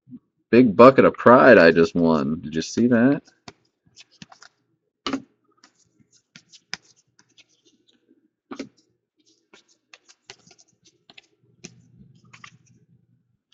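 Trading cards flick and slide against each other in a hand.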